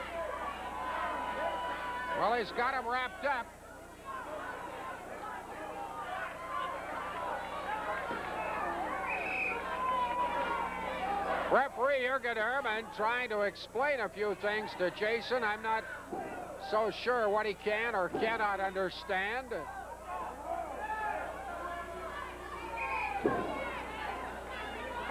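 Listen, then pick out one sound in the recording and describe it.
A crowd cheers and shouts in a large arena.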